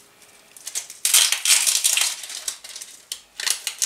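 Eggshell crackles as it is peeled.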